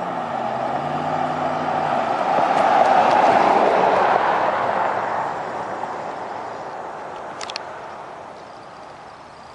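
Tyres hiss on asphalt as a car speeds past.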